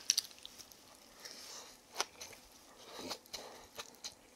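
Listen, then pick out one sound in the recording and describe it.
A woman slurps noodles up close.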